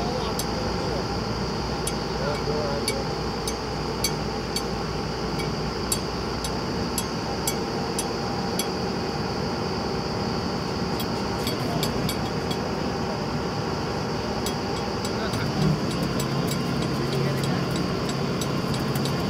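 Metal clanks sharply now and then.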